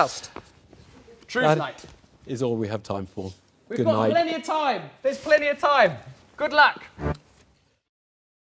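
An older man laughs and speaks.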